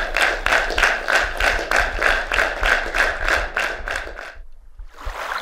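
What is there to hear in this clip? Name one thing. An audience claps together in a quick, steady rhythm.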